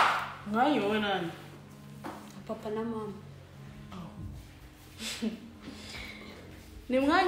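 A young woman speaks calmly and close by, with short pauses.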